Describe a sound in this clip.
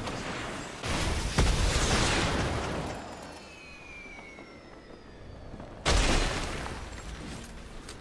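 A loud explosion booms and debris clatters down.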